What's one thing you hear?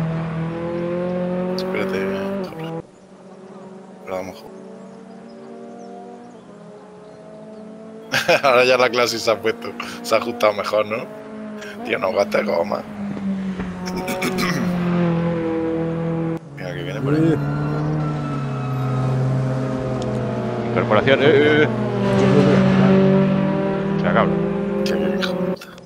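A race car engine roars and revs up and down.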